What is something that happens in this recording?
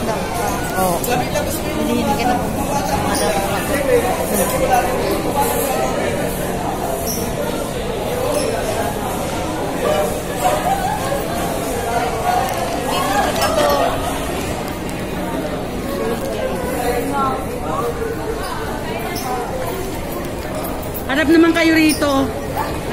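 A middle-aged woman talks close by, with animation.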